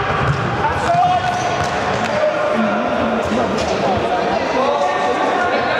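Young players shout to each other in a large echoing hall.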